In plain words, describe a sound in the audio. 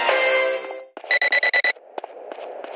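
A pager beeps rapidly.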